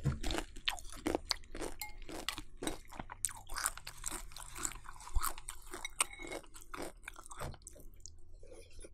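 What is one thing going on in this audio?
Crunchy cereal crackles close up as a young woman chews.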